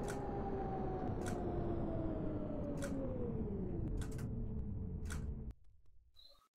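A tram's electric motor whines, falling in pitch as the tram slows to a stop.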